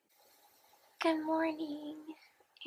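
A young woman speaks close by in a sleepy, drawn-out voice.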